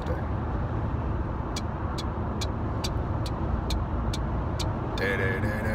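A car engine and tyres rumble low and steadily from inside the car.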